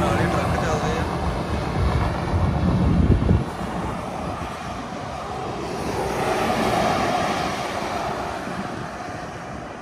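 Trucks and cars rush past on a highway nearby.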